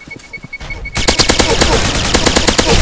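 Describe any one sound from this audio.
An automatic rifle fires in a rapid burst.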